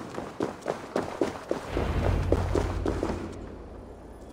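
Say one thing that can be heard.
Footsteps tap quickly on stone, then stop.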